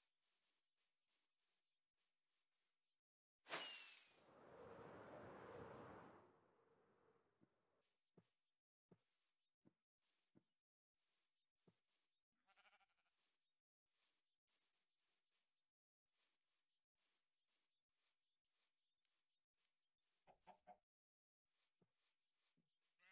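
Footsteps patter quickly on grass in a game.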